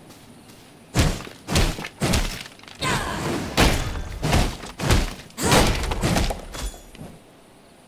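Repeated chopping blows strike wood.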